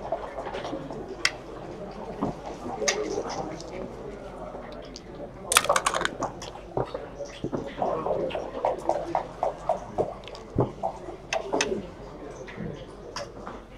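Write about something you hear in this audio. Plastic checkers click as they are moved on a board.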